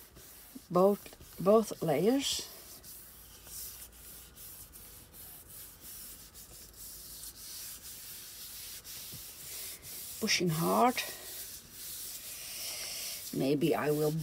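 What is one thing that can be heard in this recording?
A hand rubs softly over a sheet of paper.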